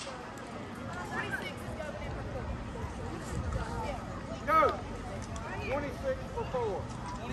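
Young women shout and cheer in the distance across an open field.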